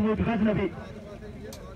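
A man shouts loudly nearby.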